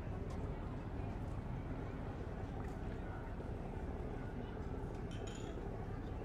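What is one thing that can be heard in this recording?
People chatter quietly at a distance.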